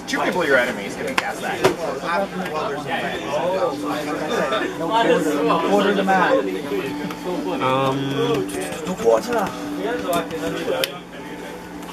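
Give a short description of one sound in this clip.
Playing cards slap and slide on a table.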